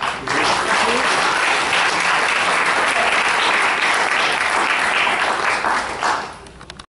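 A woman claps her hands amid loud applause.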